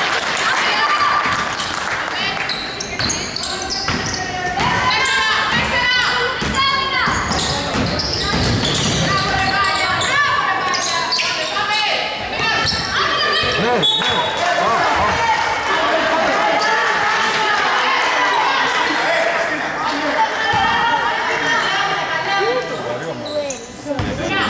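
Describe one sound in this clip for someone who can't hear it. A crowd of spectators shouts and cheers throughout.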